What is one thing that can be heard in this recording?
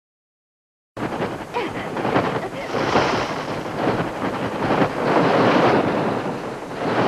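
Many birds flap their wings furiously close by.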